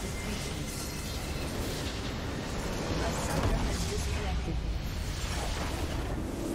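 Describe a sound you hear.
A large structure crumbles and explodes with a deep rumbling blast.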